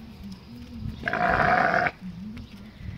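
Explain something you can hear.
A sheep bleats loudly nearby.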